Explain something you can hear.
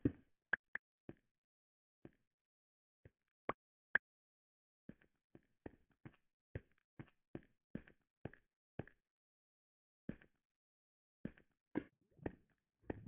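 Footsteps tap on stone in an even walking rhythm.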